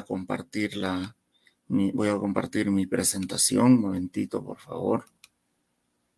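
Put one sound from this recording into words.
A middle-aged man speaks calmly over an online call.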